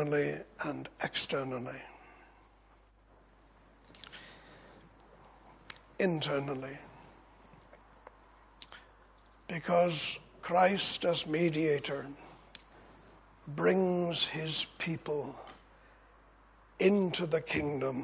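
An elderly man speaks with emphasis into a microphone, pausing between phrases.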